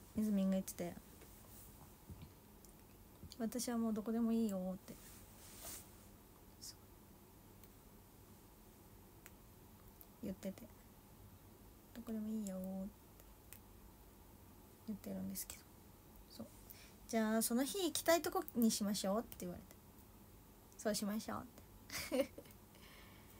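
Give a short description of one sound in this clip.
A young woman speaks softly and casually, close to a microphone, in short bursts.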